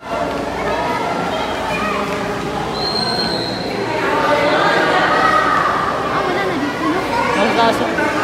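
Adults and children chatter nearby in a large echoing hall.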